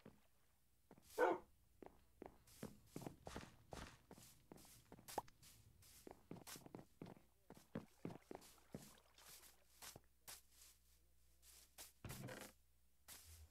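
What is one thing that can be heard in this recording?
Footsteps crunch steadily on grass.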